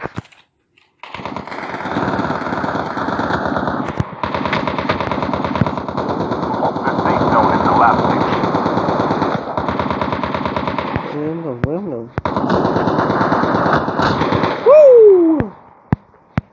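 A rifle fires in rapid, sustained bursts.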